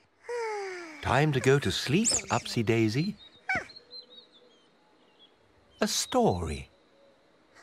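A child-like voice speaks playfully and close by.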